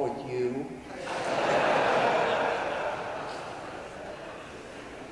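An audience laughs together in a large room.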